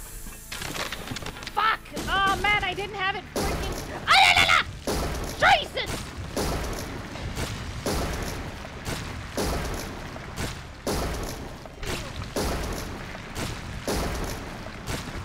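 Rapid gunfire bursts out in short, repeated volleys.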